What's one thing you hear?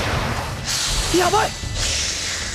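A boy yells in alarm.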